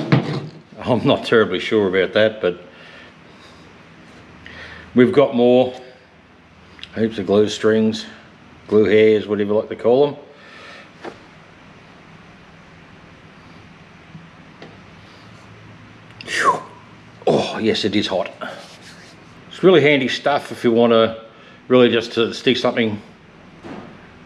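An older man talks calmly and close by.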